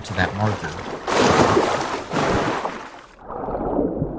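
Water splashes as a swimmer dives in.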